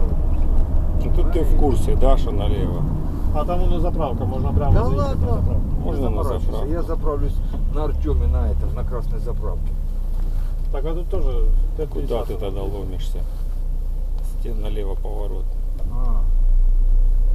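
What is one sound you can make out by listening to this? A man talks calmly nearby inside a car.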